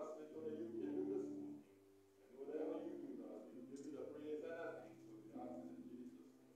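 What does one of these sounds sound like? A man speaks in long, drawn-out tones through a microphone in an echoing hall.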